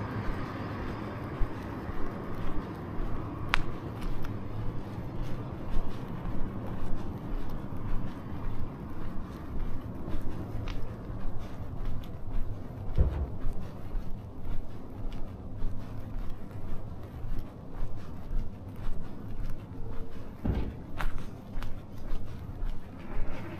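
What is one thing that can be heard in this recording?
Footsteps tap steadily on pavement outdoors.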